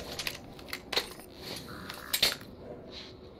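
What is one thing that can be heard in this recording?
A rifle is reloaded with sharp metallic clicks.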